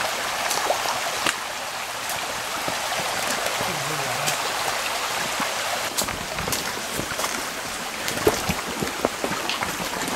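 Boots crunch and splash on wet stones underfoot.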